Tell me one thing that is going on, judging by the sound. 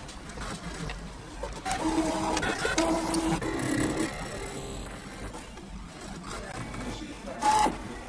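A cutting machine whirs and buzzes in short bursts as it moves.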